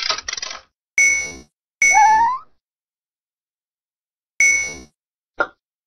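Bright electronic game chimes ring out in short bursts.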